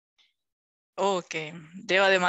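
A woman speaks over an online call.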